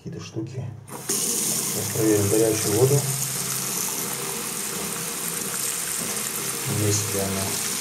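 Water runs from a tap and splashes into a basin.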